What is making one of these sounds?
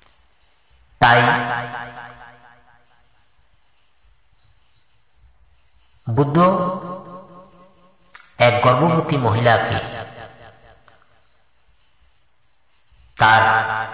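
A man speaks in loud, drawn-out phrases with pauses between them.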